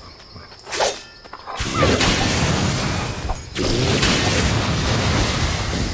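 Coins jingle as they scatter.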